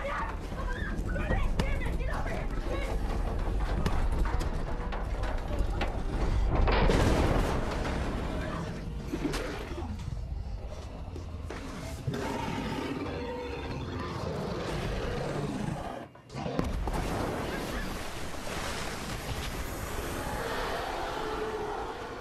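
A man grunts and cries out in a struggle close by.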